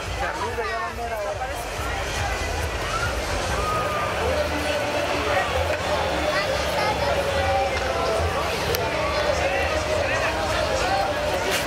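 A large crowd of men and women chatters loudly outdoors.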